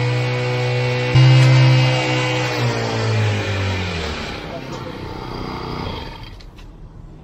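A small petrol engine drones steadily, then slows and dies away.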